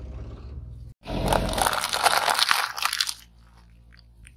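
Plastic cups crack and crunch under a tyre.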